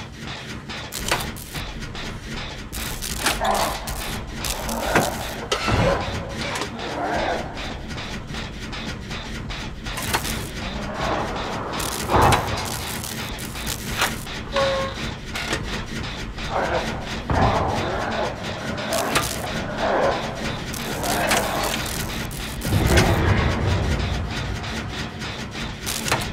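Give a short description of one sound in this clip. A machine clatters and rattles steadily with quick metallic clicks.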